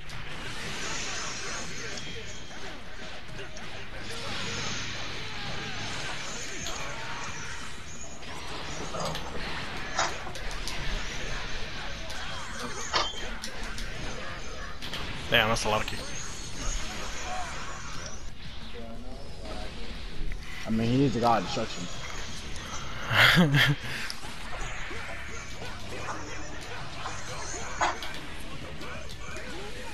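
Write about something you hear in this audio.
Punches and kicks land with sharp, rapid hits.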